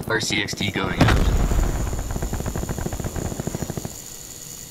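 A small remote-control car whirs and buzzes as it drives.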